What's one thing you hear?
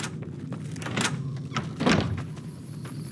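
A door opens with a creak.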